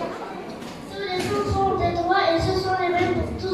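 A young boy speaks into a microphone in an echoing hall.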